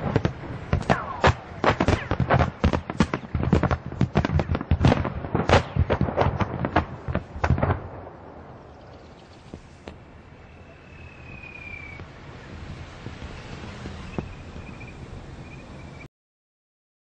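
Strong wind roars and buffets outdoors, dying down to a steady hiss.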